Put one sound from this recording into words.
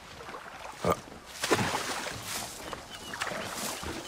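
Reeds rustle and swish as someone pushes through them.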